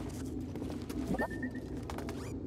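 A small robot chirps and beeps in a rising tone.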